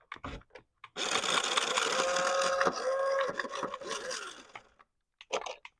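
A small electric toy motor whirs as the wheels of a toy car spin.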